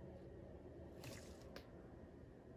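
A rubber glove rustles against a smooth surface.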